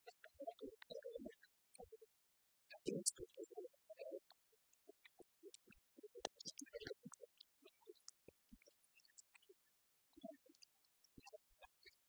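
Keys clatter softly on laptop keyboards.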